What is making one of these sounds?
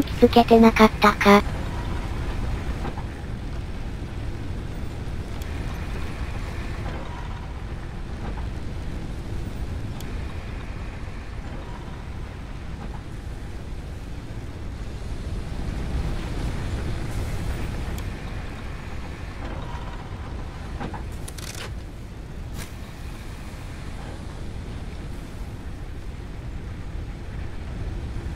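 Heavy machinery hums with a low, steady rumble.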